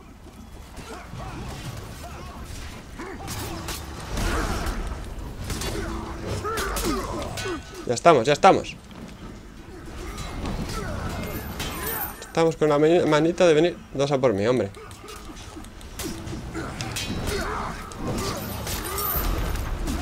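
Swords clash and clang amid a noisy battle.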